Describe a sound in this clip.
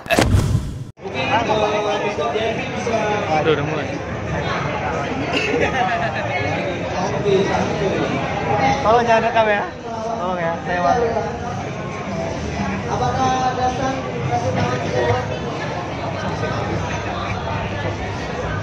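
Young men chatter nearby in a busy, noisy hall.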